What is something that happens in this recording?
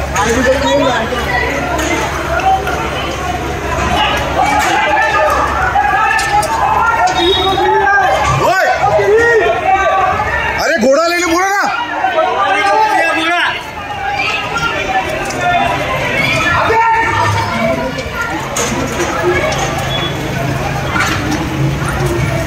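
A crowd of people shout and scream in alarm nearby.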